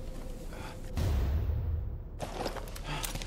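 A dull thump sounds as an item is picked up.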